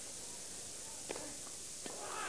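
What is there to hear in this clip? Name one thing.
A tennis ball is struck with a sharp pop.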